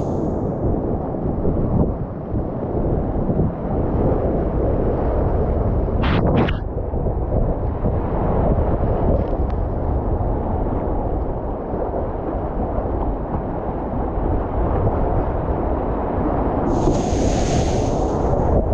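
Rushing whitewater roars loudly and steadily close by.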